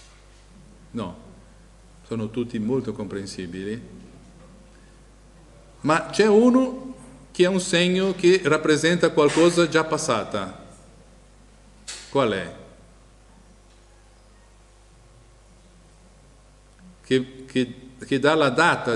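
A middle-aged man speaks with animation into a microphone, in pauses.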